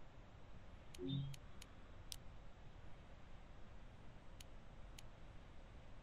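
Short, sharp menu clicks sound now and then.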